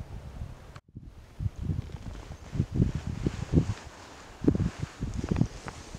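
Dry reeds rustle close by in the wind.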